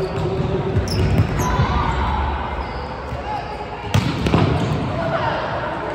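A volleyball thumps off players' arms and hands.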